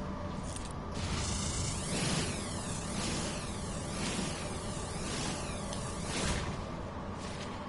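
A video game mining laser buzzes and crackles in bursts.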